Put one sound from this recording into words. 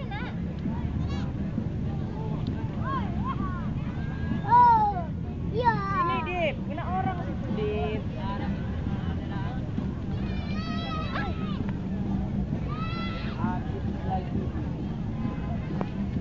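A toddler babbles and squeals nearby.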